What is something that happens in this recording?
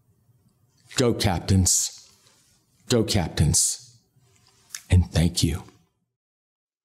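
An older man speaks calmly and clearly into a close microphone.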